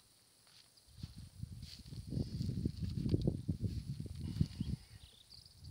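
Roots tear and soil crumbles as a bush is pulled from the ground.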